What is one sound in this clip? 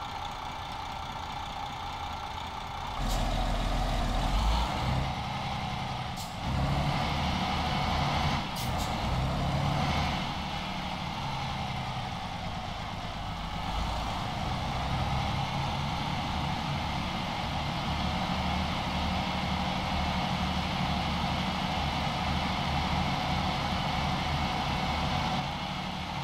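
A truck's diesel engine idles and then rumbles as the truck pulls away.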